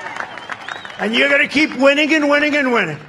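A man speaks loudly through a loudspeaker.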